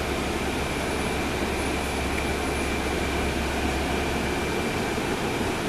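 Traffic hums by on the street outside.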